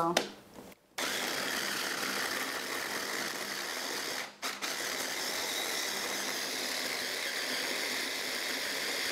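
An electric food chopper whirs steadily.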